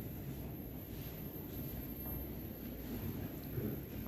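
Footsteps tread on a hard stone floor.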